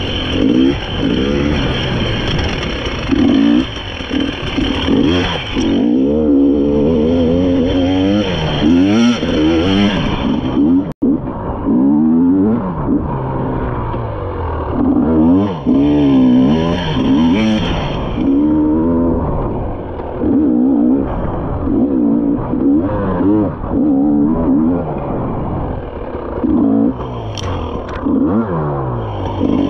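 A dirt bike engine revs up and down up close, over and over.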